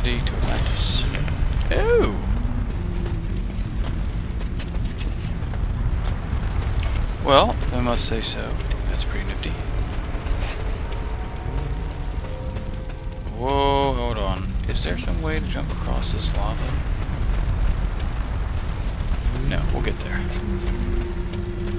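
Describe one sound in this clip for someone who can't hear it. Fire roars and crackles steadily.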